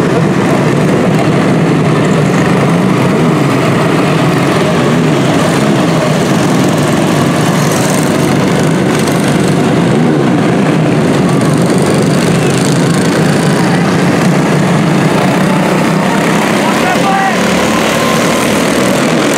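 Many small racing engines buzz and whine loudly close by.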